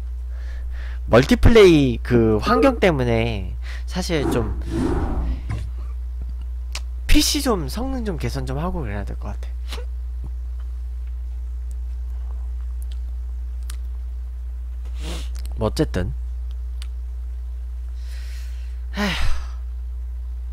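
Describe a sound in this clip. A young man talks animatedly into a close microphone.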